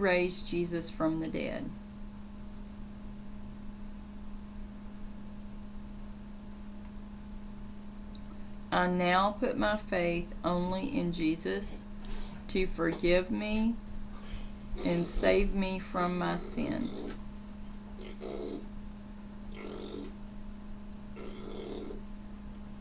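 A middle-aged woman speaks calmly and close to a microphone, pausing now and then.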